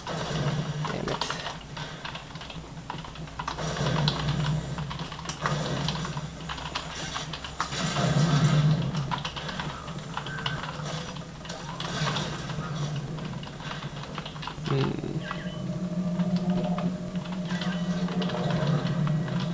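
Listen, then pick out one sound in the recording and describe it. Gunshots and blasts from a video game play through small speakers.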